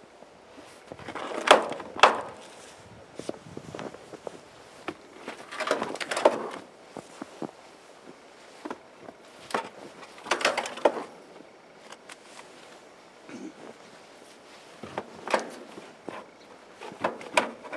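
Boots crunch and tramp through deep snow.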